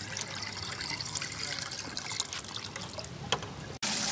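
Liquid pours and splashes through a strainer into a pot.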